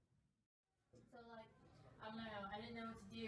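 A teenage girl speaks nearby.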